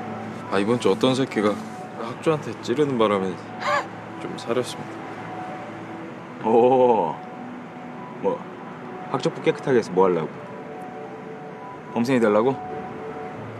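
A young man speaks in a taunting tone close by.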